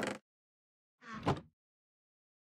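A wooden chest thumps shut.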